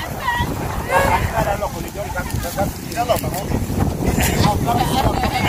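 Children talk and call out nearby, outdoors.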